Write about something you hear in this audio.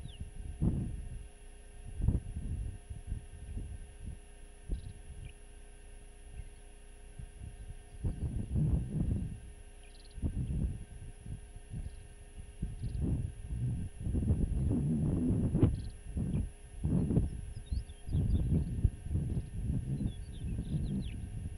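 Wind gusts and buffets across open ground outdoors.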